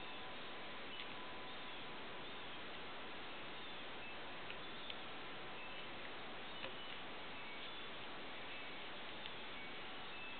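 Small parts click and tap softly against a circuit board.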